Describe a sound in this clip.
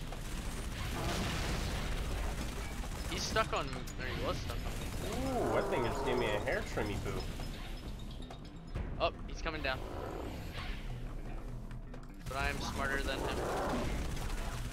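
Gunfire cracks in a video game.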